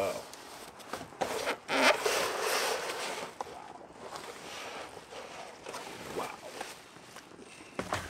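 Plastic wrapping and cardboard rustle and crinkle.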